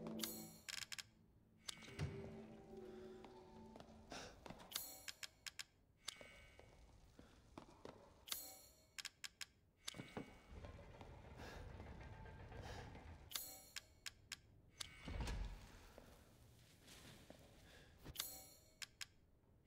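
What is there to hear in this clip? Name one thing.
Sharp menu clicks and chimes sound in quick bursts.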